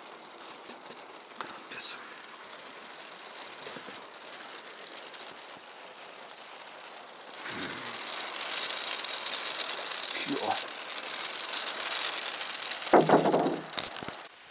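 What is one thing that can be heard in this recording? Rain patters on a car window.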